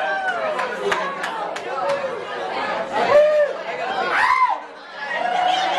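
A band plays electric guitars loudly.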